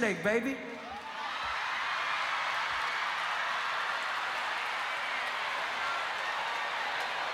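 A large crowd cheers and shouts in a big hall.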